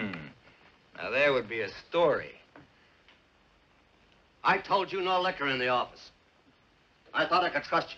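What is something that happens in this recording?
An older man speaks gruffly.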